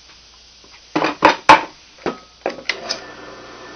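Wooden boards knock against a metal table.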